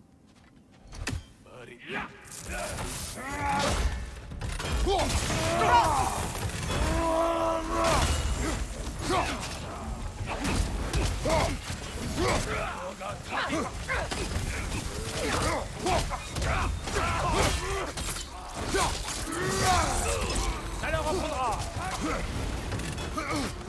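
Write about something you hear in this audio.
Heavy axe blows thud and clang in a fast fight.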